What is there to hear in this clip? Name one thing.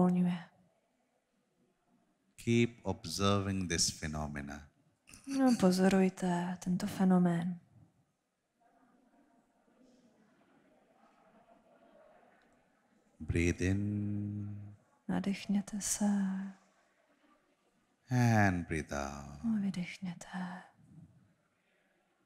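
A woman speaks calmly into a microphone, heard through loudspeakers.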